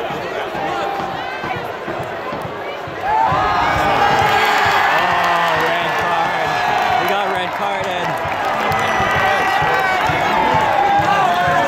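A large stadium crowd roars and cheers throughout.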